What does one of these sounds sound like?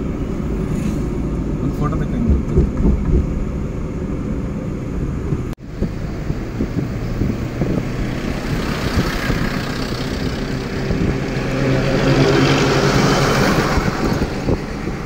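A truck engine rumbles close by.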